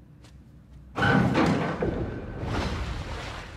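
Feet land with a loud metallic clang on a metal stairway.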